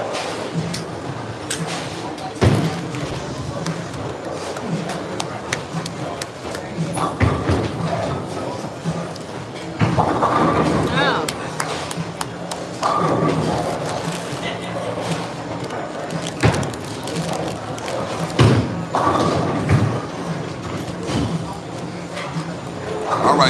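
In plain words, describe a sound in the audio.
Bowling balls roll down wooden lanes.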